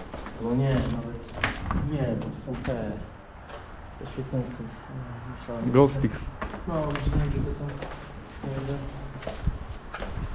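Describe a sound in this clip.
Footsteps crunch on debris underfoot.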